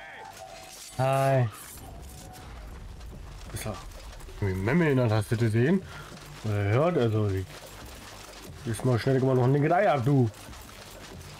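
A man talks into a close microphone, loudly and with animation.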